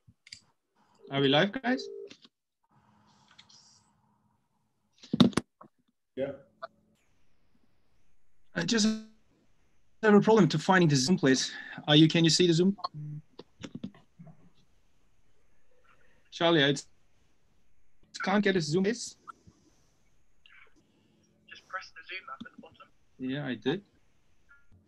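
A man speaks over an online call, with pauses between phrases.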